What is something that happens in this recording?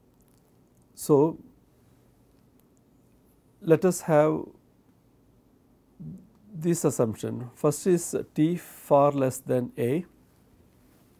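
A middle-aged man speaks calmly into a close microphone, in short bursts with long pauses.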